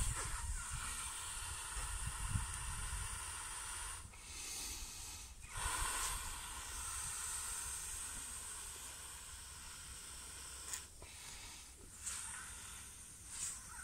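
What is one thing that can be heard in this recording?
Nylon fabric rustles and swishes as a quilt is handled up close.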